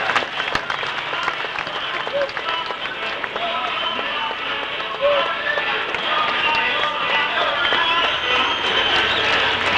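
Men talk close by amid the crowd.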